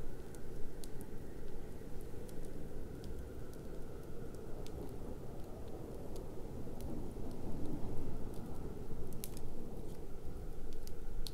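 A wood fire roars steadily.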